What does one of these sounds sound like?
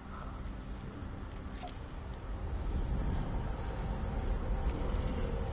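Footsteps patter quickly on stone steps.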